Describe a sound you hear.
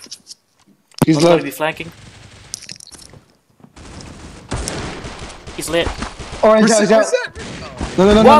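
Gunshots ring out in short, sharp bursts.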